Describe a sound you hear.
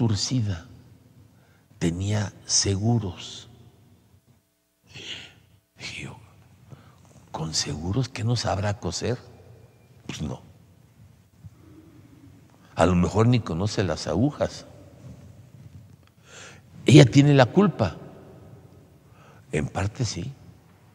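An elderly man preaches with emphasis into a microphone, with pauses, in a slightly echoing hall.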